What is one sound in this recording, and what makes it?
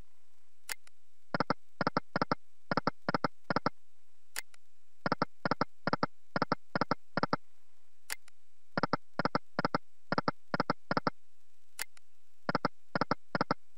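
Slot machine reels spin and stop with rapid clicking chimes.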